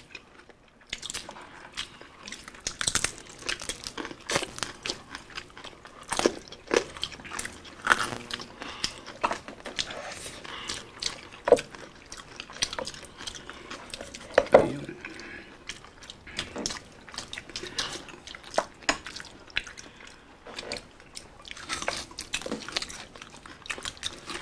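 Food crunches and squelches as people chew close to a microphone.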